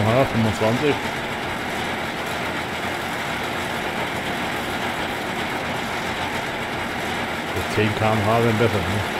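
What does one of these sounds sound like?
A combine harvester engine drones steadily.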